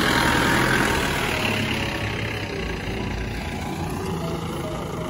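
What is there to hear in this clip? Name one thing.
A jeep engine rumbles nearby.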